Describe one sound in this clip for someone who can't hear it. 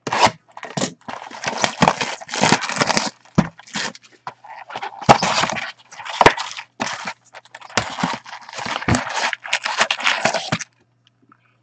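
Foil card packs rustle and crinkle as they are handled.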